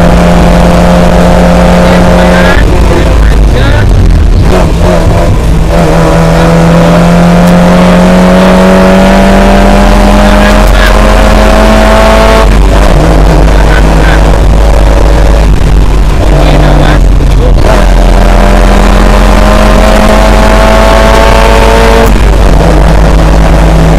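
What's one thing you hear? A small motor whines loudly, rising in pitch as it speeds up and dropping sharply as it slows.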